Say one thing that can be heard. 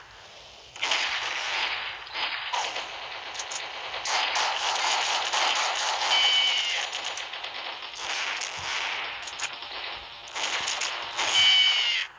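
A jetpack roars in short blasts.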